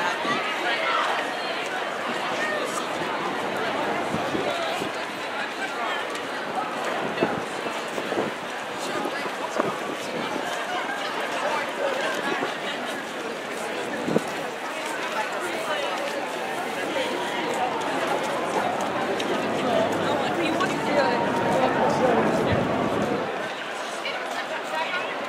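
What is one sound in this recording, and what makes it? A crowd of men and women chatters and calls out nearby outdoors.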